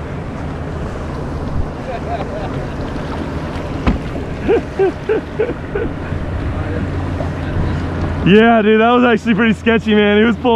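Wind blows steadily outdoors over open water.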